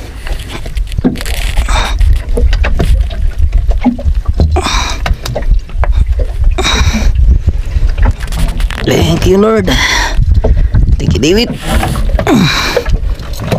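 Fish flap and thump against a plastic hull.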